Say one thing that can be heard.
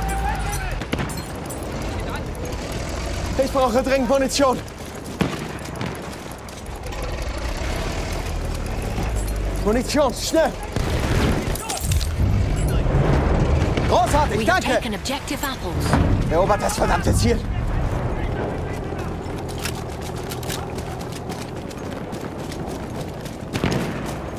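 Gunfire and explosions rumble in the distance.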